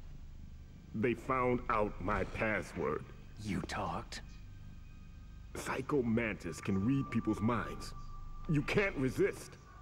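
A man speaks anxiously, close up.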